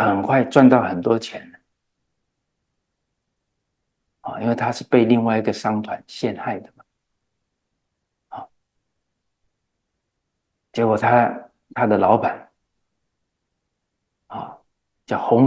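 A middle-aged man speaks calmly and deliberately into a close microphone, with long pauses.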